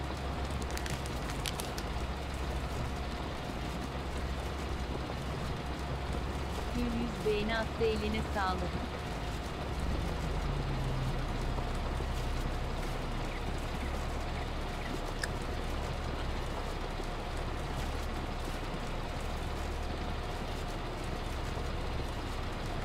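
Potatoes rattle along a conveyor into a trailer.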